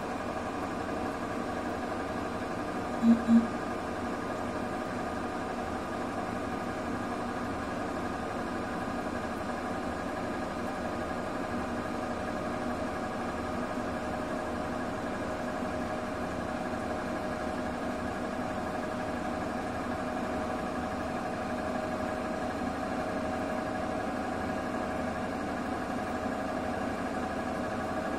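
Water sloshes inside a washing machine drum.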